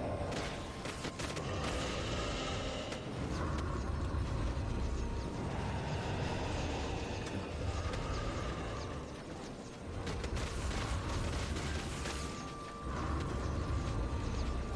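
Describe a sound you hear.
Strong wind rushes steadily past.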